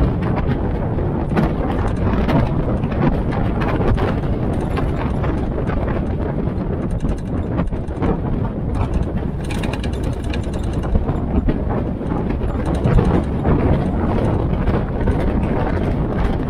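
Tyres crunch over a gravel track.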